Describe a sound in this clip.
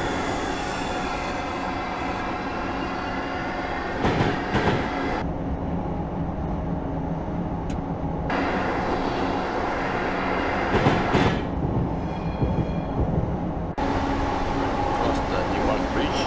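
A train's electric motors hum steadily as the train moves along the tracks.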